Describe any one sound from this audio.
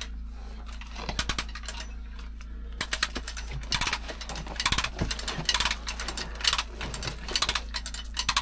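A metal chain clinks and rattles against rock.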